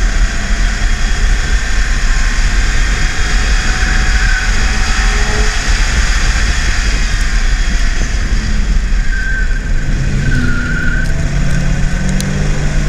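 A car engine roars loudly as the car speeds up and slows down.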